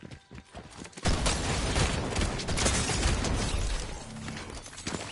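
Gunshots fire in rapid bursts from a game.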